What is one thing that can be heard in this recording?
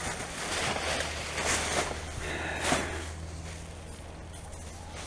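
Plastic bags and rubbish rustle and crinkle as a gloved hand rummages through them.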